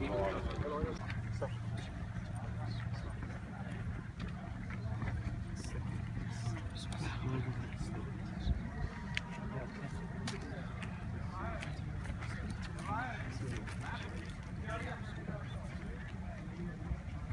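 Men murmur quietly outdoors.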